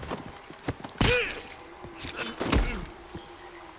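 Heavy thuds land during a brief scuffle.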